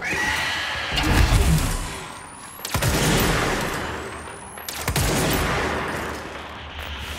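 Loud explosions boom and roar.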